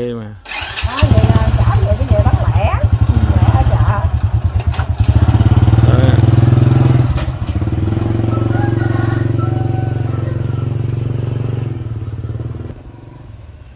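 A motor scooter engine starts and idles loudly close by, then pulls away.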